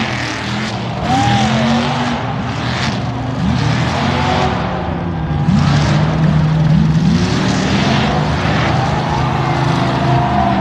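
Tyres spin and churn through loose dirt and gravel.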